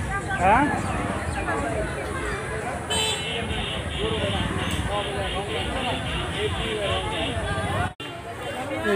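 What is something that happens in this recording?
A crowd chatters in the background outdoors.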